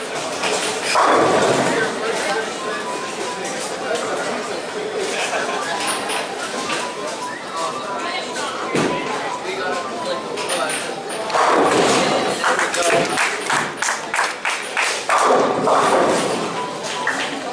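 Bowling pins crash and scatter loudly.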